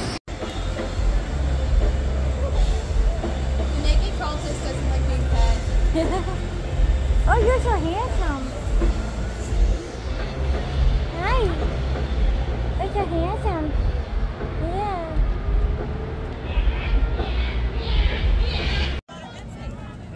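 A fairground ride rumbles and hums as it runs.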